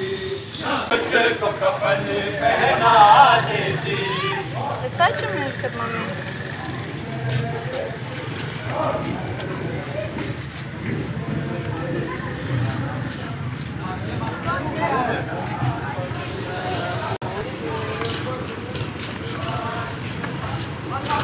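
A crowd of men chants and talks outdoors nearby.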